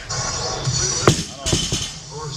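A loaded barbell drops and thuds onto the ground.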